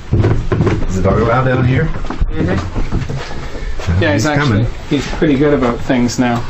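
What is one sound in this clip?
A man talks close by in a low voice.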